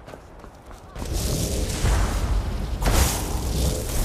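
A magic spell crackles and roars loudly.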